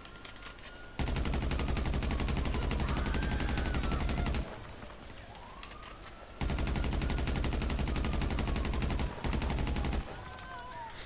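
An automatic gun fires in long, rapid bursts.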